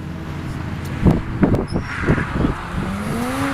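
A car exhaust bangs and pops sharply several times.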